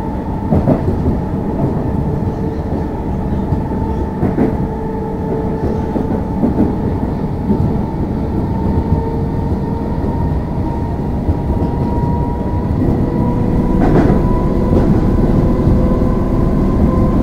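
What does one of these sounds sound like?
A train rumbles steadily along the tracks, with a low droning hum.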